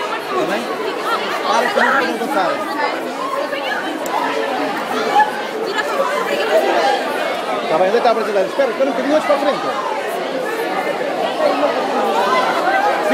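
A crowd of young women and girls chatters excitedly all around, close by.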